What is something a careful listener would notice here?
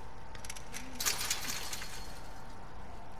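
A metal chain-link gate rattles as it is pushed.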